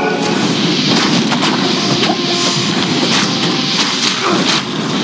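Weapons clash and spells crackle in a fierce game battle.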